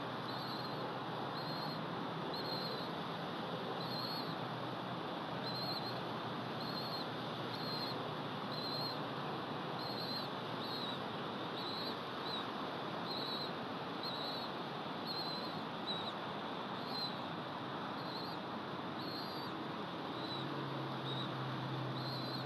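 Wind rushes steadily through pine branches outdoors.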